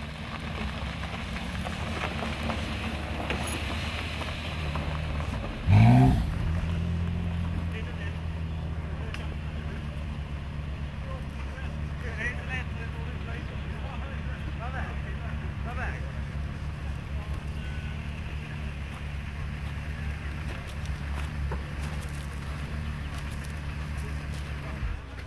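Men talk quietly in the distance outdoors.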